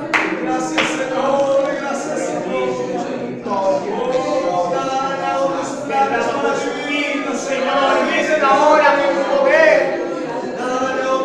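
A crowd of women and men pray aloud together with fervour.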